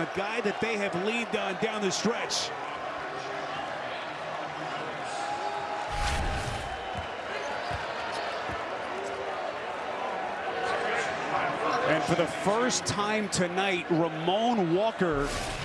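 A large crowd cheers and claps in a big echoing arena.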